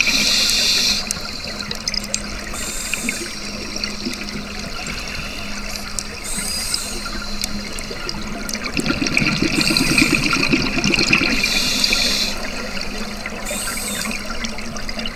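A diver breathes through a regulator underwater, letting out gusts of bubbles every few seconds.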